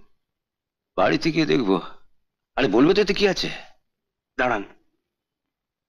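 An older man speaks firmly and close by.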